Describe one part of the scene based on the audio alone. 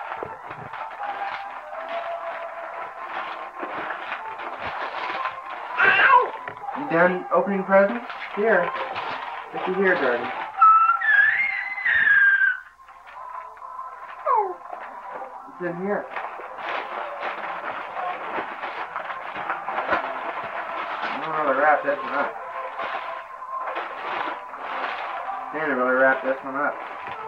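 Wrapping paper crinkles and rustles as a gift is unwrapped.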